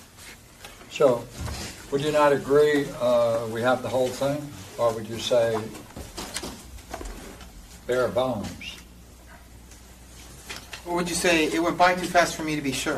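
An elderly man speaks calmly, lecturing in a room with a slight echo.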